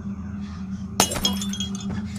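Bodies thump down onto a bed.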